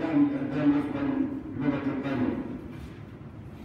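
A man speaks firmly into a microphone in an echoing room.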